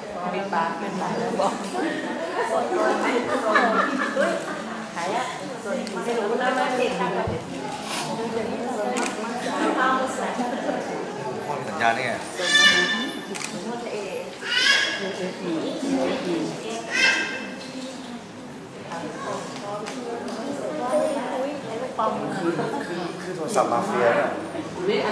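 Several people chatter in the background in a large echoing hall.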